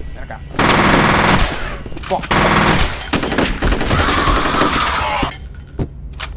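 A rifle fires loud rapid bursts.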